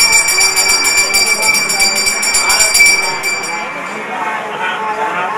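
A man chants prayers nearby.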